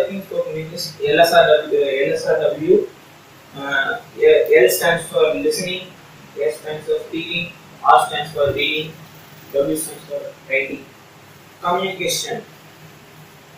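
A young man speaks with animation nearby.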